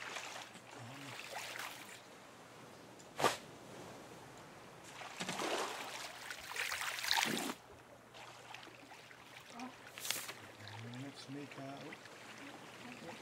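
Waves lap gently against a raft.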